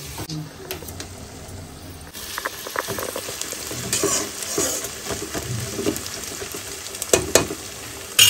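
A metal spoon scrapes and clatters in a pan.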